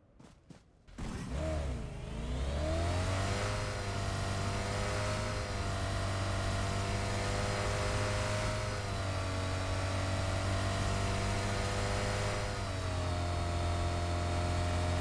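A car engine hums steadily, revving up as the car drives off.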